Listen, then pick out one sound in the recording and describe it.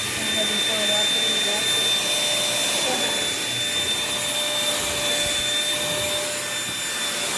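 A vacuum cleaner motor runs with a steady high whine.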